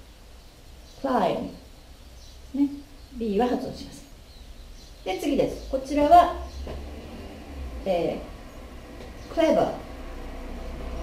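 A woman speaks slowly and clearly close by, pronouncing words one at a time.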